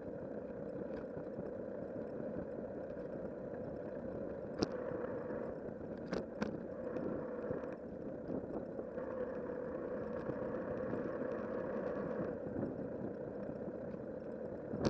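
Wind buffets a microphone outdoors, rumbling steadily.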